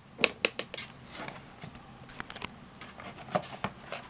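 A finger presses plastic buttons with soft clicks.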